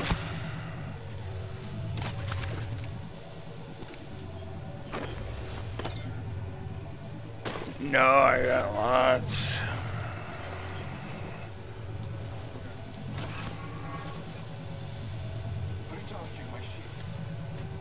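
Soft menu clicks sound as items are selected and swapped.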